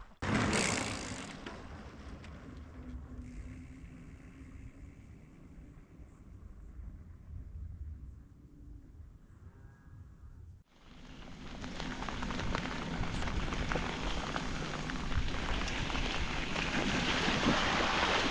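Bicycle tyres roll and crunch over a dirt road.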